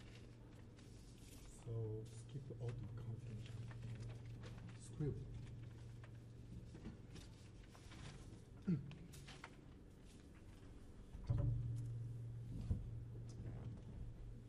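A piano plays sparse notes.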